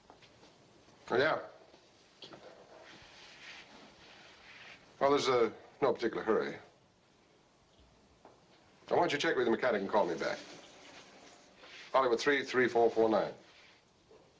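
A man talks calmly on a phone, close by.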